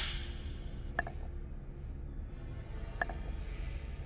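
Toggle switches click sharply into place, one at a time.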